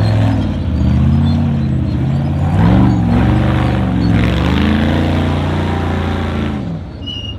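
An off-road buggy's engine roars and revs hard as it climbs.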